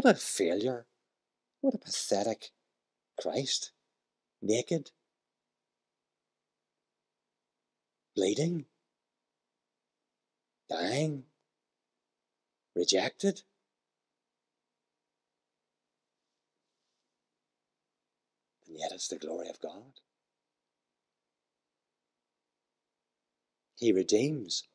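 A man speaks calmly into a microphone, pausing often.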